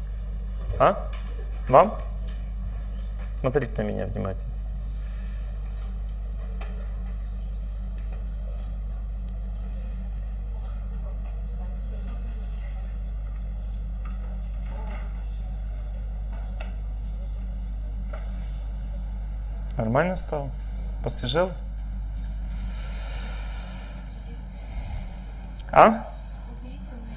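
A middle-aged man speaks calmly into a microphone, in short bursts with long pauses.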